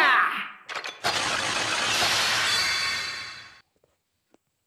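A toy belt plays a buzzing electric crackle effect.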